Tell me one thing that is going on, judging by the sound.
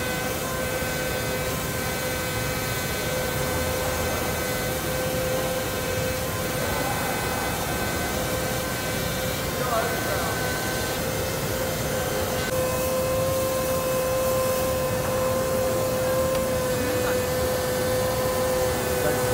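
A spray machine's motor hums steadily.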